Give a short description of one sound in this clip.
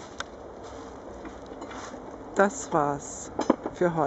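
A fabric bag rustles as it is handled.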